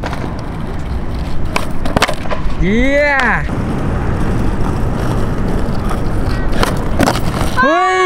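Skateboard wheels roll and rumble on rough concrete.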